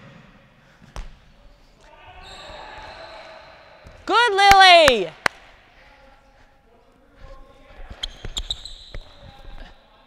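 A ball thuds as it is kicked across a hard floor in an echoing hall.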